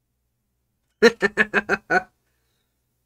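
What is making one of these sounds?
A man laughs in short bursts, close to a microphone.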